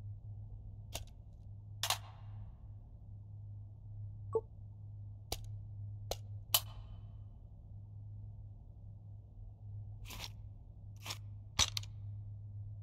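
Metal magazines clack and click as they are handled.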